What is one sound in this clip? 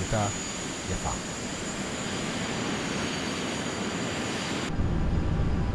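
A jet engine roars with a steady hiss as a plane flies by.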